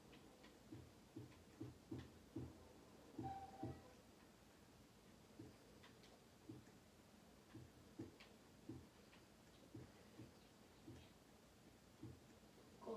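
Footsteps thump rhythmically on a floor.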